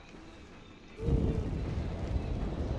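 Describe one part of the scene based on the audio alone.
A burst of fire roars with a deep rumble.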